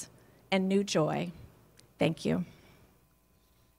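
A young woman speaks with feeling through a microphone.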